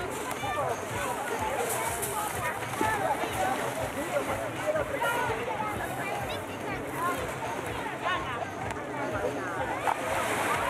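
Children and adults chatter and call out nearby outdoors.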